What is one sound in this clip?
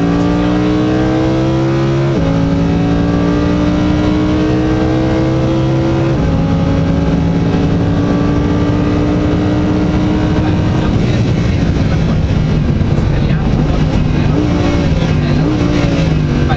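Tyres hum and rumble on the track.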